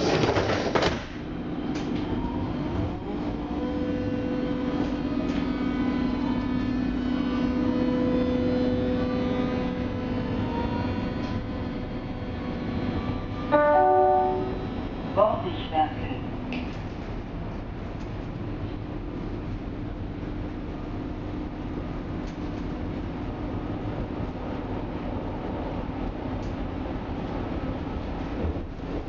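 A train rumbles and hums steadily as it rolls along the tracks.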